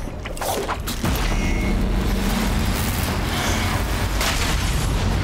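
A burst of energy crackles and roars loudly.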